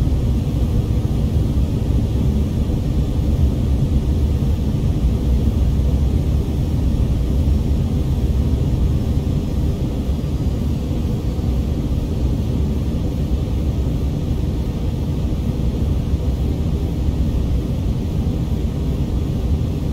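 A steady low roar of jet engines and rushing air fills an aircraft cabin.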